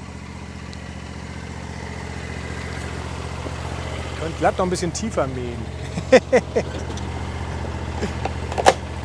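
A mower engine idles with a steady low hum.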